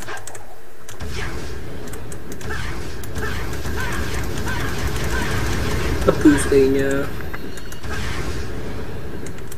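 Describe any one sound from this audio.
A rushing whoosh sounds as a game character dashes at high speed.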